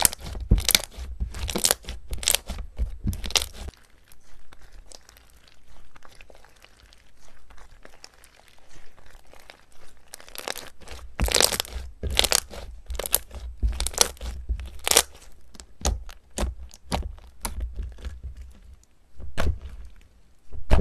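Sticky slime squishes, crackles and pops as hands squeeze and stretch it.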